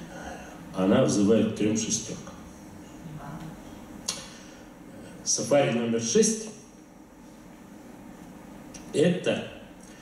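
A man speaks calmly into a microphone, heard through loudspeakers in a large echoing room, with pauses between phrases.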